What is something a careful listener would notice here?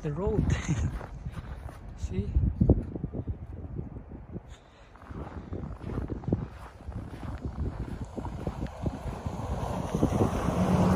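Footsteps crunch through snow close by.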